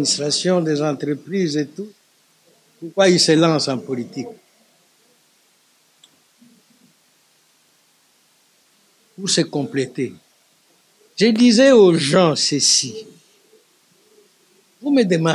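An elderly man speaks with pauses into a close microphone.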